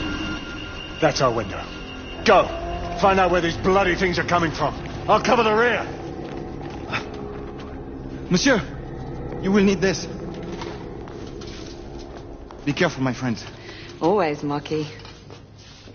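Men speak tensely in low voices, close by.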